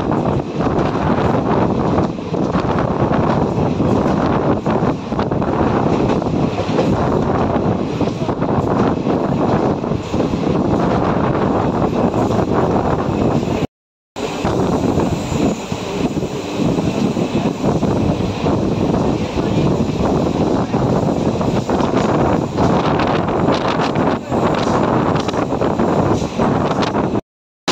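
A train rumbles and rattles steadily along the track.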